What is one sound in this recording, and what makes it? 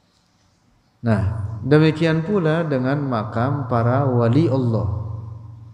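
A young man chants melodiously into a close microphone.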